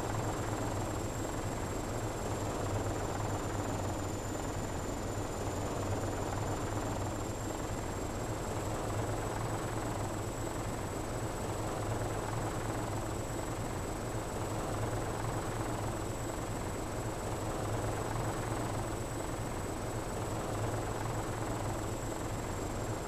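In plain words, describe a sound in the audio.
A helicopter's rotor thumps and its engine whines steadily close by.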